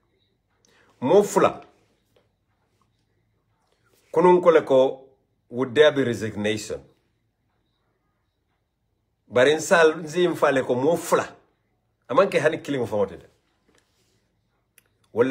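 A man speaks with animation close to a phone microphone, in short bursts with pauses.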